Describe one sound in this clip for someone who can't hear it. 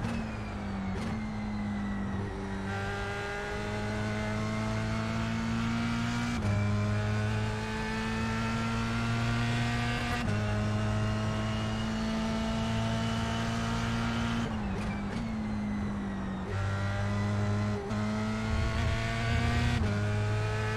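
A race car engine roars, rising in pitch through each gear and dropping at each shift.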